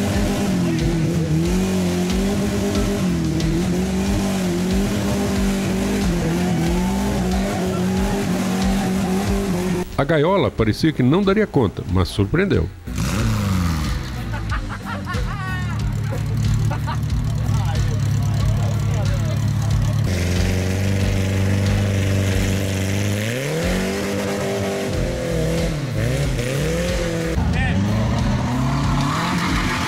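An off-road engine revs hard, rising and falling.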